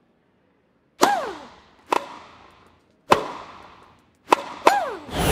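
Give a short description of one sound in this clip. A tennis ball is struck with a racket in sharp, ringing thwacks.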